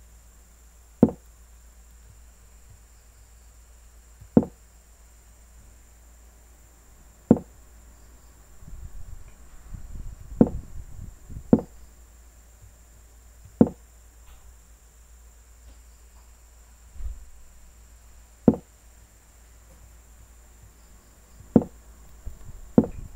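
An online chess game plays a short click with each move.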